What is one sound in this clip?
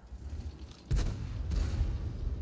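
A tank cannon fires with a heavy boom.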